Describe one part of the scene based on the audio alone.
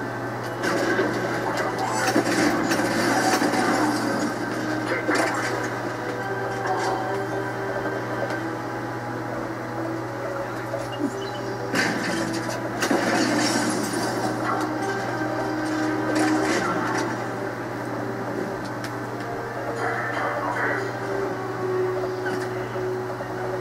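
Gunfire crackles in bursts from a television.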